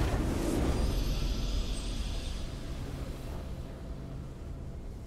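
A triumphant game victory fanfare rings out and slowly fades.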